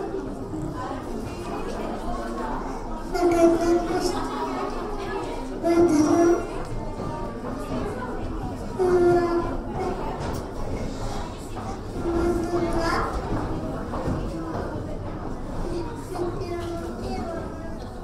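A woman talks softly to a child.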